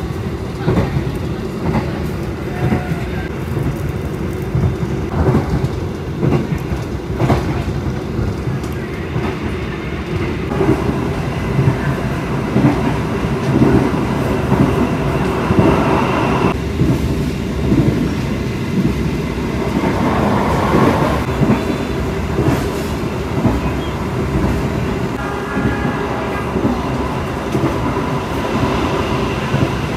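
A train rumbles steadily along the tracks, with wheels clattering over rail joints.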